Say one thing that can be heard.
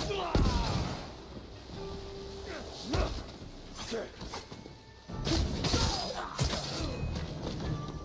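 Swords clash and ring in quick strikes.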